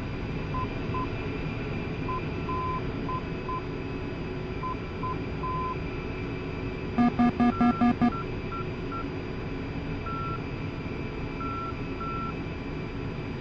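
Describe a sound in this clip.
A jet engine hums and whines steadily at idle.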